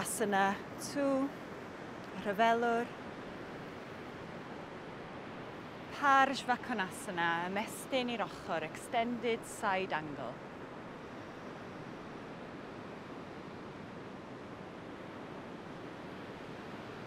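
Small waves wash gently onto a beach.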